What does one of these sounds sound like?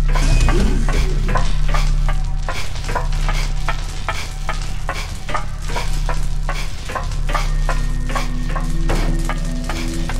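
Footsteps clack quickly on a hard metal floor.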